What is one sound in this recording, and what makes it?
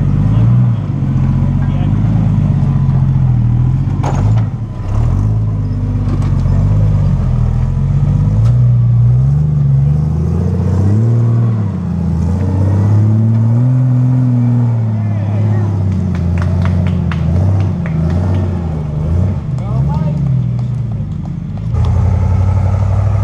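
Tyres crunch and scrape on rock.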